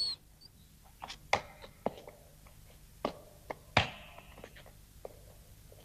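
A dog's claws click on a hard floor as it walks.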